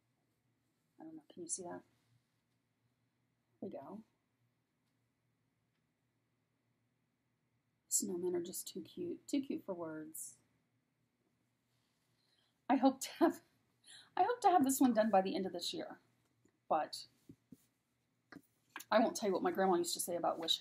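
A middle-aged woman talks calmly and close by, with pauses.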